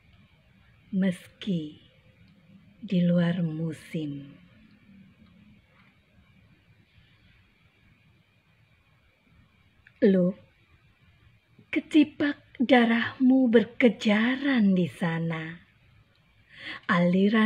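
A middle-aged woman speaks with animation, close to the microphone, with long pauses.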